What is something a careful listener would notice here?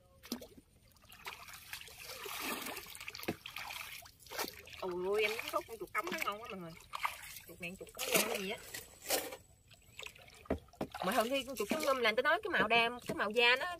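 A paddle splashes and swirls through water.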